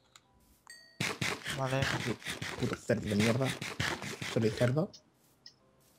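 A game character munches food with crunchy bites.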